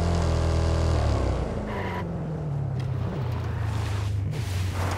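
A pickup truck's engine slows down, dropping in pitch.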